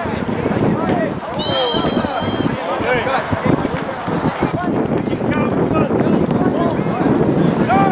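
Spectators nearby chatter and shout.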